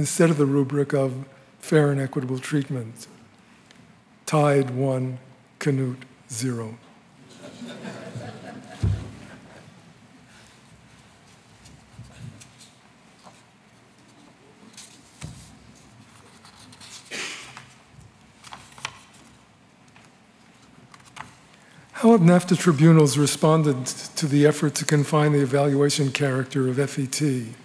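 An elderly man speaks calmly into a microphone, heard through a loudspeaker in a large room, with long pauses.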